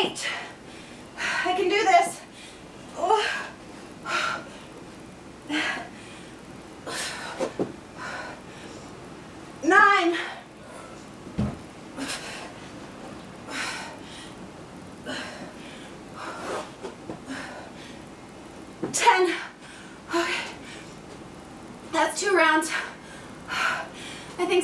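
A woman exhales hard between exercises.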